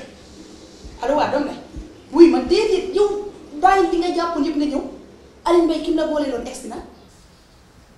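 A young woman talks animatedly into a phone, close by.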